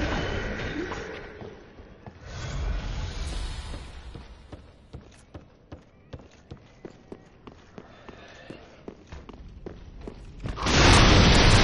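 Armoured footsteps clatter on wooden floorboards.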